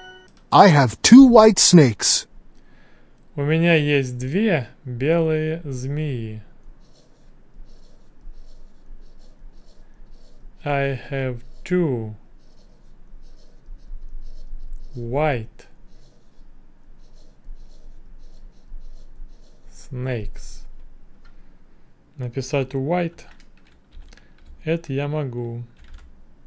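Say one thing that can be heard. A young man speaks slowly and clearly into a close microphone, pausing often.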